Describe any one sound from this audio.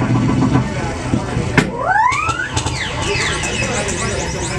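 A flexible metal sheet wobbles, making warbling, gliding tones.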